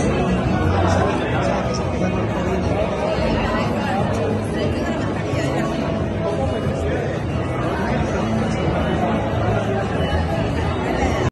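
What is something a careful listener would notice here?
Many people talk at once in the background.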